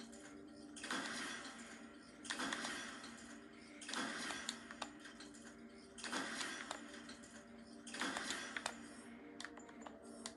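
Interface sounds whoosh and chime as menu items are selected.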